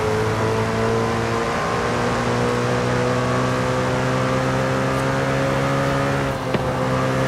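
A racing car engine roars at high speed, its pitch slowly rising.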